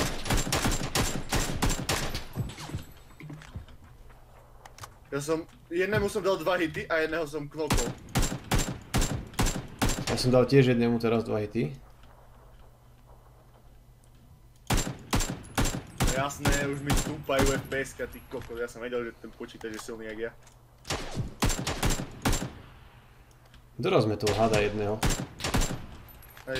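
Rifle shots fire in quick bursts, loud and sharp.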